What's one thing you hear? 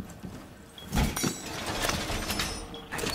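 A metal device clicks and clatters as it is set down.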